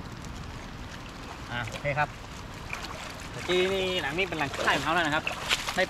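Water sloshes as a man wades through a flooded river.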